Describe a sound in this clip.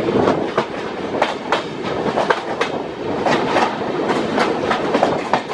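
Two trains pass close by each other with a loud rushing roar.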